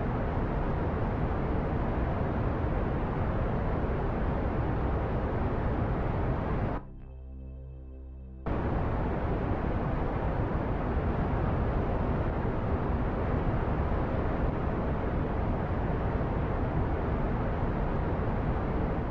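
A rocket engine roars steadily.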